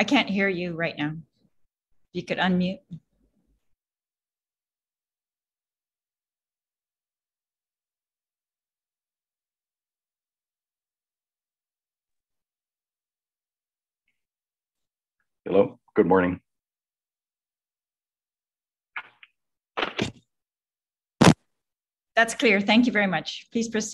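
A woman speaks in short bursts over an online call, with long silences between.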